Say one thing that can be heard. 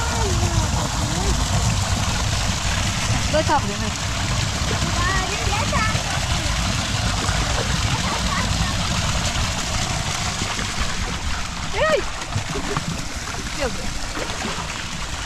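A thin stream of water splashes steadily into foamy water below.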